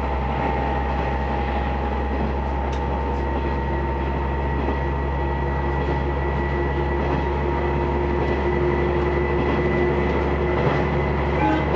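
A train rumbles and hums steadily along its track.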